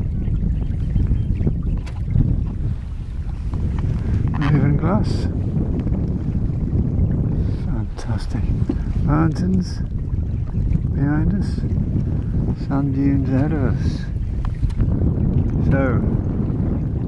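Water laps and splashes against a small boat's hull.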